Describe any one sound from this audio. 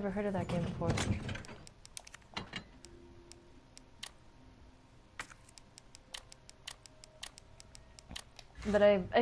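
Short electronic menu ticks click quickly one after another.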